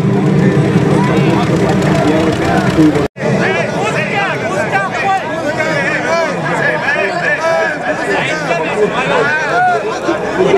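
A large crowd of men shouts and calls out loudly outdoors.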